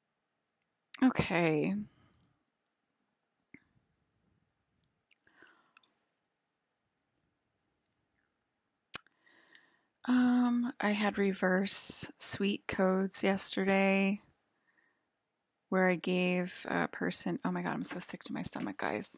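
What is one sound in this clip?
A woman speaks calmly and close to a microphone, with pauses.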